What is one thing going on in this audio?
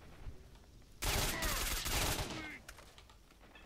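A rifle fires in a burst.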